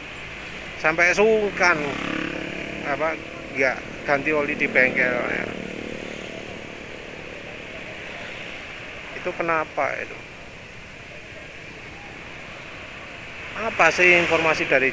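Motorcycle engines idle and rumble in dense traffic.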